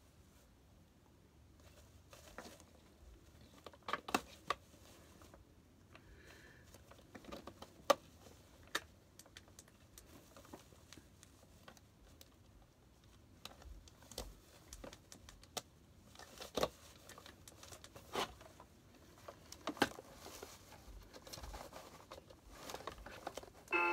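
Fabric rustles and clicks as a man handles a plush figure close by.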